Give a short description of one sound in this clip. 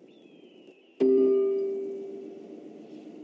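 A game's menu opens with a bright metallic chime that rings and slowly fades.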